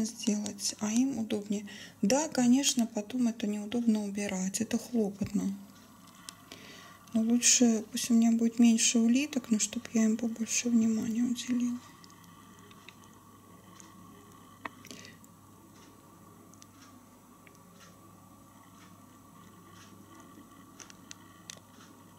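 A snail rasps softly as it feeds on wet fruit, close up.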